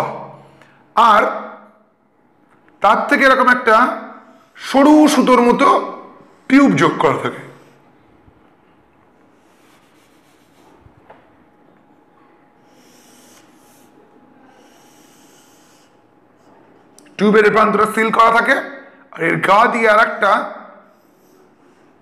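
A man speaks calmly and clearly close by, in short bursts with pauses.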